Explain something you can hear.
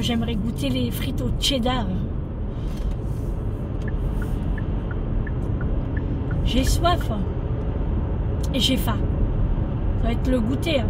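A car engine and road noise rumble steadily inside a moving car.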